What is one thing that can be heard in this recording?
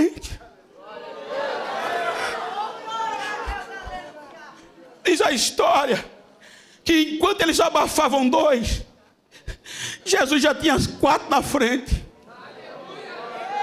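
An elderly man preaches with animation through a microphone in a large echoing hall.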